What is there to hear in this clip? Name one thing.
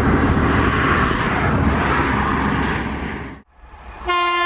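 A passenger train rumbles past in the distance.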